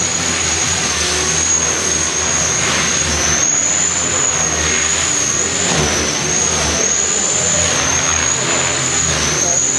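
A small toy helicopter's motor whines high and steady, wavering slightly in pitch.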